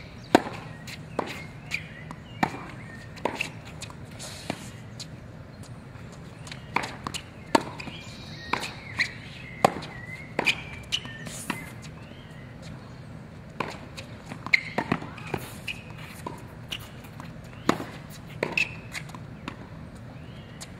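Tennis rackets strike a ball back and forth in a rally.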